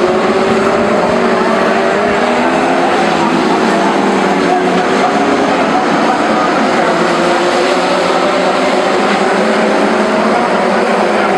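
Several F2 stock car engines roar at full throttle as the cars race around a tarmac oval.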